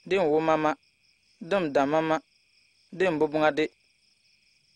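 A man speaks close by in short, forceful bursts.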